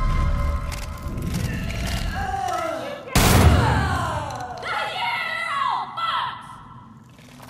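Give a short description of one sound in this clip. A creature shrieks and groans in pain.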